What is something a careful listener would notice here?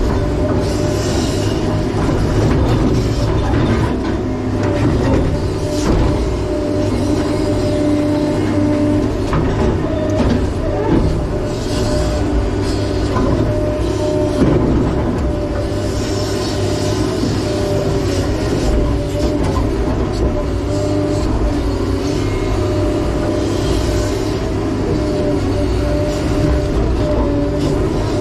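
Hydraulics whine as a digging arm moves.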